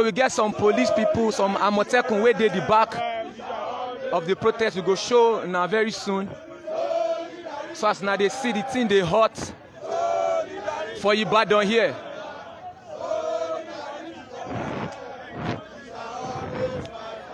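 A crowd of men and women chants loudly outdoors.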